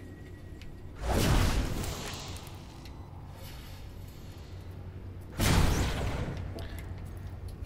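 A magical door hums and whooshes as it lights up and opens.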